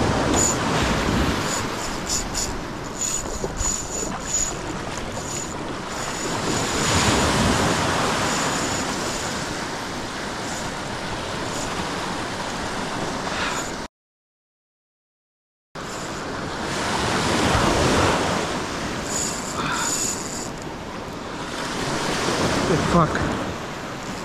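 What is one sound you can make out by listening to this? Small waves wash and break close by.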